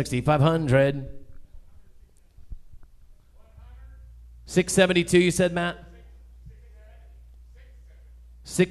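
A man chants rapidly into a microphone, heard over a loudspeaker in an echoing hall.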